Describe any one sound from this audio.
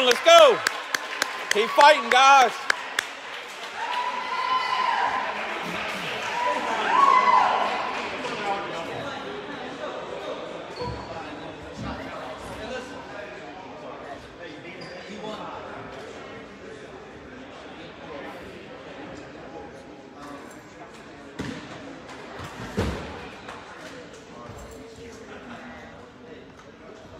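Voices of a small crowd murmur and call out in a large echoing gym.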